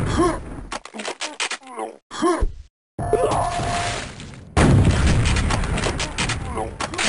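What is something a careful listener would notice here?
Game guns fire in rapid bursts.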